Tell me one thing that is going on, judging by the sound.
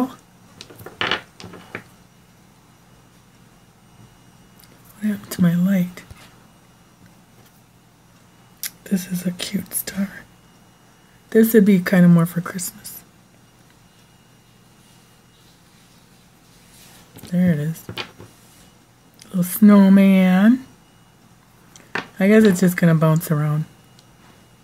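Wooden blocks click and knock against a wooden tabletop.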